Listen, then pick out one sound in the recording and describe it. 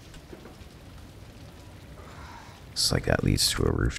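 A fire crackles and burns.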